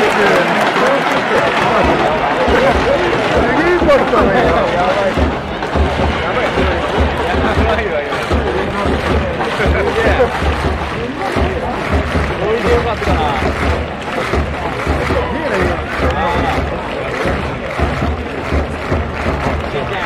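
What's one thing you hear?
A large stadium crowd chants and sings loudly in unison.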